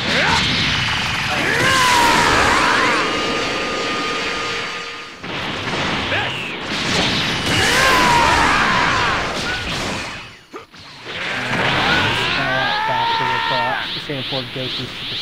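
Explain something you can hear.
Energy blasts roar and crackle.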